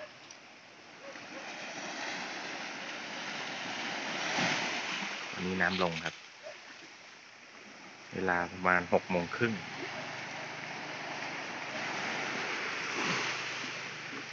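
Small waves wash onto the shore and break over rocks.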